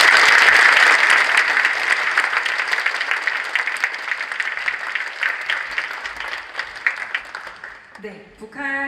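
A large audience applauds in an echoing hall, the clapping slowly fading.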